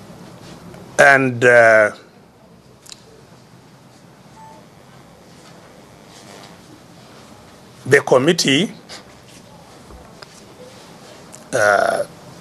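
An elderly man speaks forcefully in short loud bursts.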